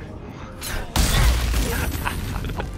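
Crackling magic lightning strikes with a booming burst.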